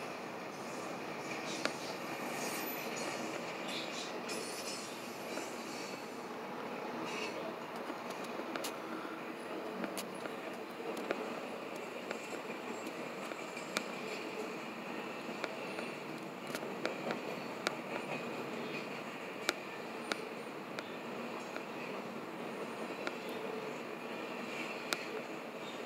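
A railroad crossing bell rings steadily.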